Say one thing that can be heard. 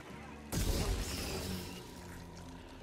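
A lightsaber swooshes and hums in a fight.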